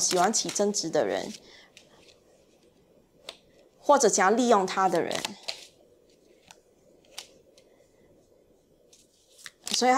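Paper cards are set down on a table with soft taps.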